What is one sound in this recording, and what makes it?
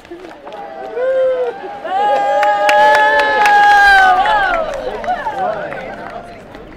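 A crowd cheers loudly as a cart rolls past.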